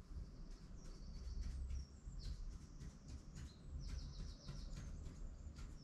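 A marker squeaks and scratches across a board.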